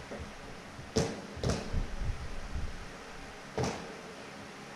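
Shoes stamp sharply on a wooden stage.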